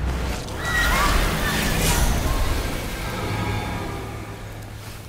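A deep magical rumble booms and fades.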